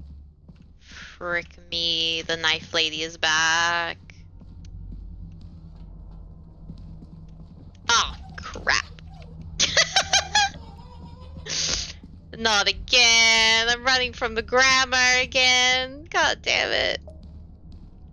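A young woman speaks with animation into a microphone, her voice high and excited.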